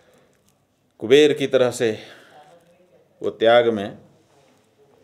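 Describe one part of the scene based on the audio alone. A middle-aged man speaks calmly and closely into a microphone, in short phrases.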